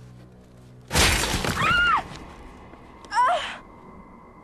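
A young woman screams in terror.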